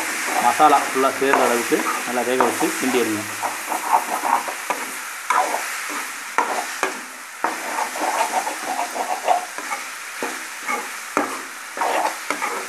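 A metal spatula scrapes and clatters against a pan while stirring.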